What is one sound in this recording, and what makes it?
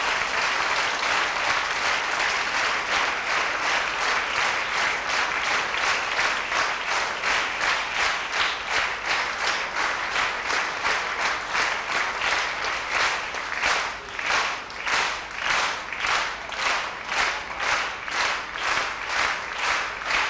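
A large audience claps in unison, steady and rhythmic, in an echoing hall.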